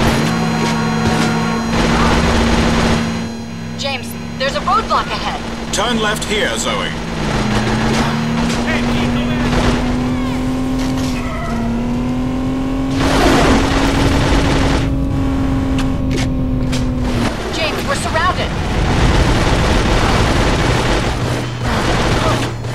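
A video game submachine gun fires in bursts.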